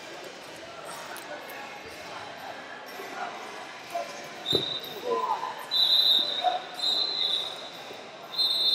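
Spectators murmur in a large, echoing hall.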